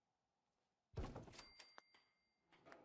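A wooden table thuds down into place.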